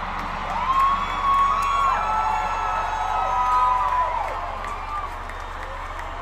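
A large crowd cheers and screams in a vast open stadium.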